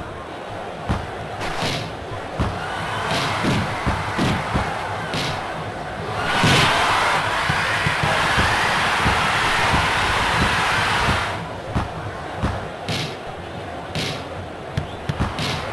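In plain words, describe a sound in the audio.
A football is kicked with short thuds.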